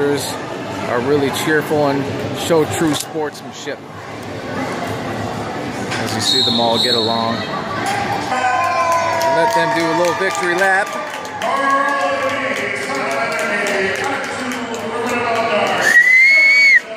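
Players and onlookers chatter and shout in a large echoing hall.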